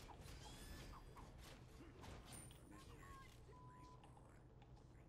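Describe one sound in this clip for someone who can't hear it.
Game sound effects of spells and hits crackle and chime.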